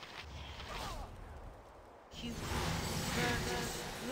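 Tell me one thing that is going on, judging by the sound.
A fireball bursts with a roar.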